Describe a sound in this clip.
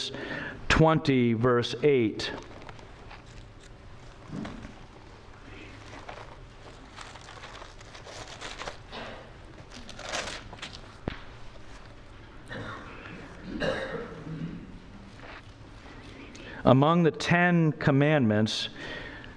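A middle-aged man speaks calmly into a microphone in an echoing room.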